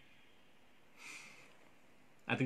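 A man sniffs.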